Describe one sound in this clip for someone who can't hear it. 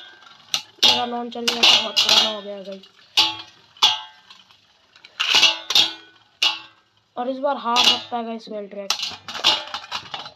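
Spinning tops knock and clash against each other.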